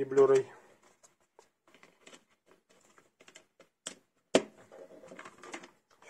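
A plastic disc case clicks and rattles in hands.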